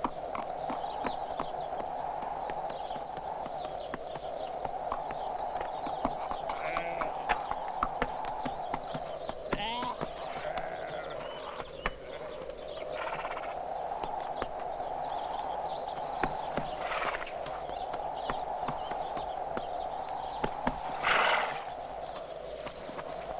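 A horse gallops, hooves thudding on a dirt path.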